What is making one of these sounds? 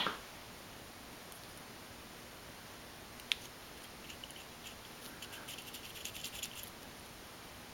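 Small plastic parts click and scrape together as fingers fit them.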